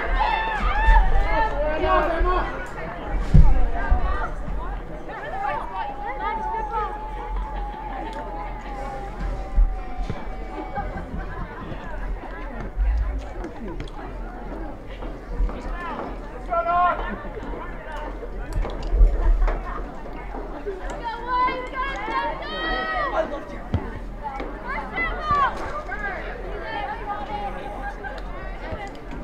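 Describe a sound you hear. Young women shout to each other across an open field outdoors.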